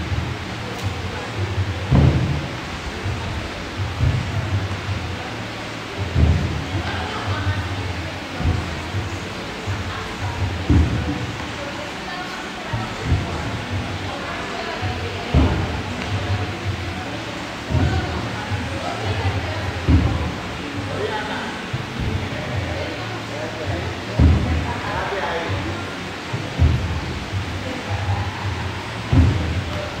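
Feet thump down on a wooden box again and again.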